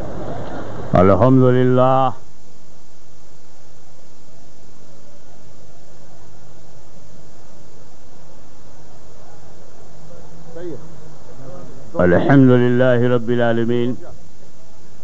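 An elderly man chants loudly in long, wavering notes through a microphone.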